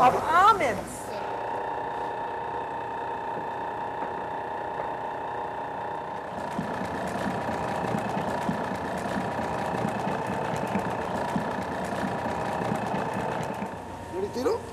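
An electric mixer motor hums steadily.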